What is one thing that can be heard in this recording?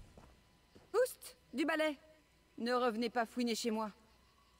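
A woman speaks sharply and close up.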